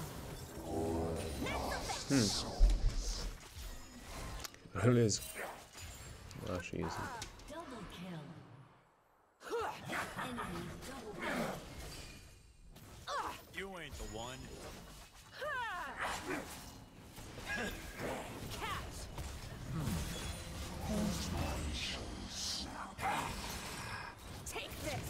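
Fantasy spell effects whoosh and crackle in quick bursts.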